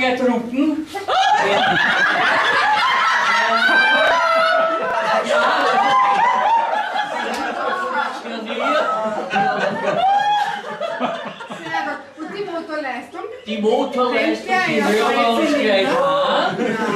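A group of men and women sing together.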